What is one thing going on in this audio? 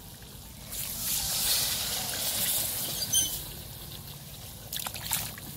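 A thick sauce sizzles and bubbles in a hot pan.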